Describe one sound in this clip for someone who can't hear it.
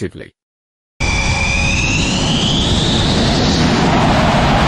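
A jet engine whines, rising in pitch.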